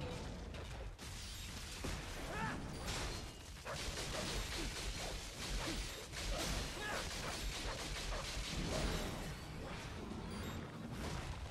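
Heavy impacts thud and crash.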